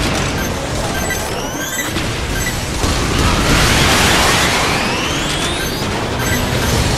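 Missiles whoosh upward with rising whistles.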